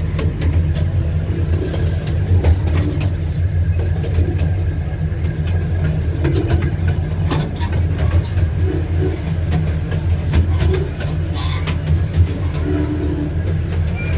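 A small open train rumbles steadily as it rolls along.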